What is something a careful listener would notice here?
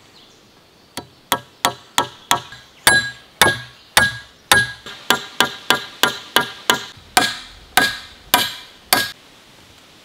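A hammer drives a nail into wood with quick, sharp blows.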